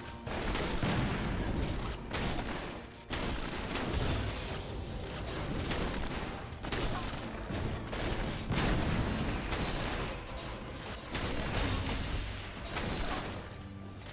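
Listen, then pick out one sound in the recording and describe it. Magic attacks whoosh and crackle in bursts.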